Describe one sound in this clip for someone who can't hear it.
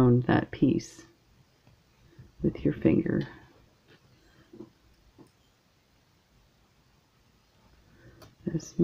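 Small pliers click softly against metal wire.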